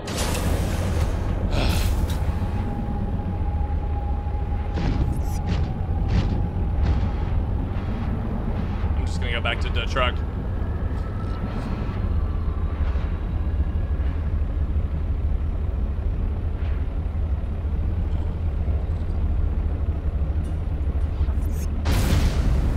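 A low engine hums steadily underwater.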